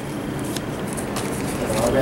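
Playing cards slap softly onto a table.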